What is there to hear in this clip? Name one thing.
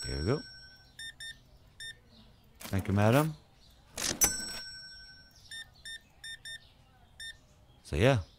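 Short electronic beeps sound from a keypad as numbers are entered.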